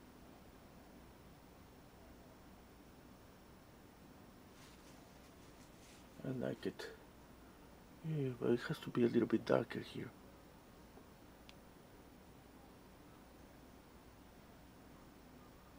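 A paintbrush brushes softly across canvas.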